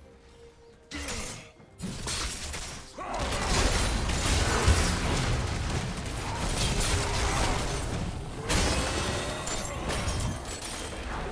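Game spell effects whoosh and crackle in a busy fight.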